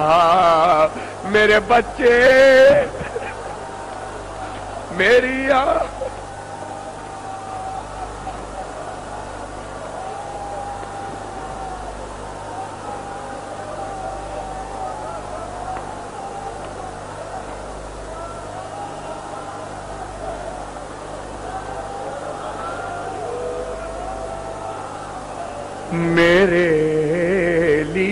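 A man chants and wails with strong emotion through a microphone and loudspeakers.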